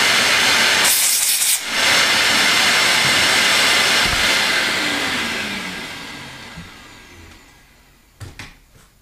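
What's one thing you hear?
A vacuum hose roars loudly and then slowly winds down.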